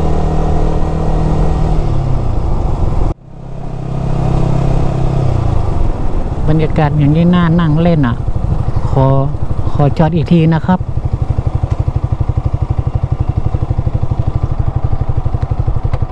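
A motorcycle engine runs close by, rising and falling in pitch as it accelerates and shifts gears.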